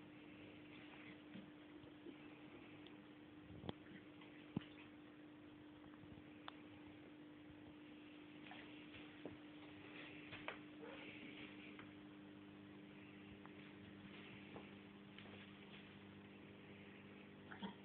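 A dog gnaws and chews on a toy, with soft clicks.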